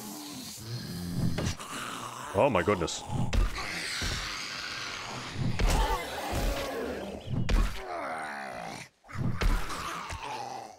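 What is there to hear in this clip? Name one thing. A zombie growls and snarls.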